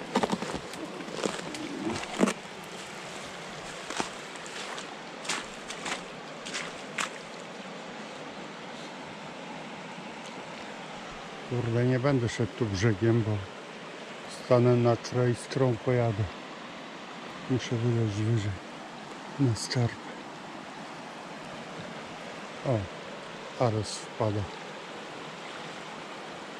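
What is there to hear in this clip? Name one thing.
A river rushes and gurgles steadily.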